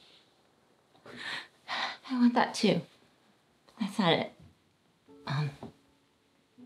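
A woman speaks softly, with emotion.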